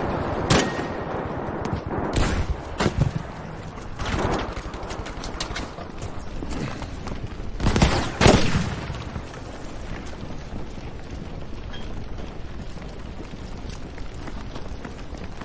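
Large fires roar steadily.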